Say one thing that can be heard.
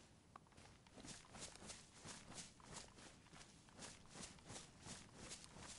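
Footsteps rustle steadily through grass and leaves.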